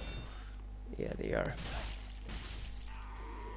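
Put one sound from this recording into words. A heavy weapon swings and strikes with a thud.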